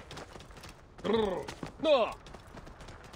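A camel groans loudly twice.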